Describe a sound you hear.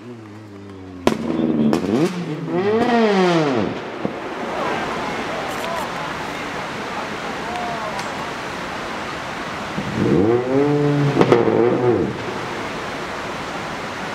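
A rally car engine revs in sharp rising and falling bursts up close.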